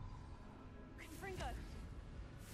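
A magic spell crackles and bursts.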